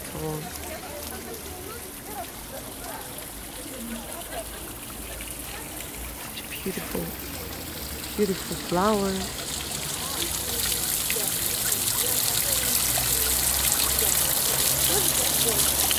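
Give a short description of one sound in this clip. Wind rustles the leaves of trees outdoors.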